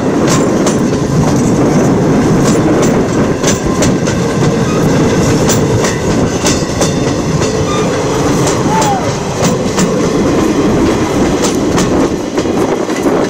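Railway carriages rumble past close by, wheels clicking over rail joints.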